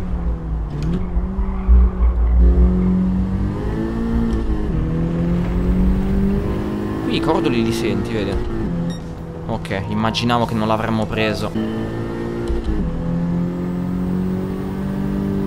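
A racing car engine drones and shifts in pitch as it accelerates and changes gear.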